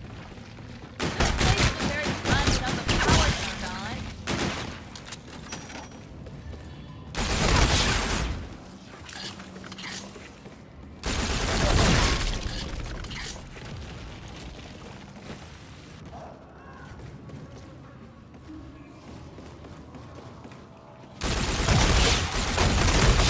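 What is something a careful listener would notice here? A gun fires in loud rapid bursts.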